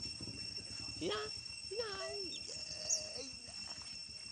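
A baby monkey squeals in short, high, wavering cries.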